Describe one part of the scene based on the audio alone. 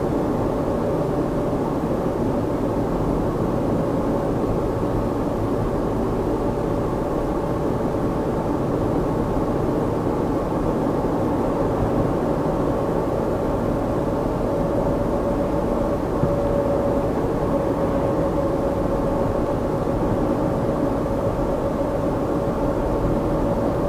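A car engine hums steadily, heard from inside the car.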